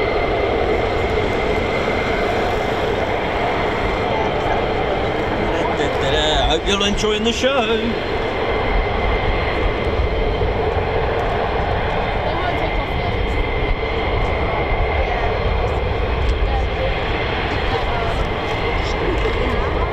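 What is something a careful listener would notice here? A jet engine idles nearby with a steady, loud roar and whine.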